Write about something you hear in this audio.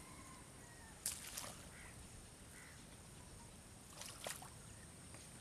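Water splashes as a landing net is dipped into a pond.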